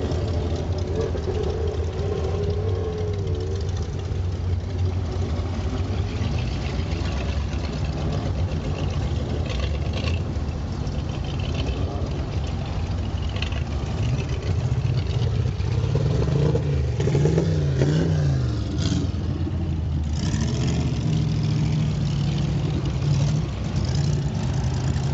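An old car engine rumbles steadily up close.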